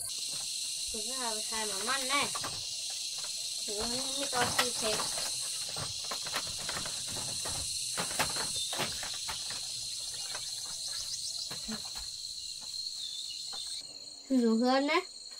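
A young boy speaks calmly nearby.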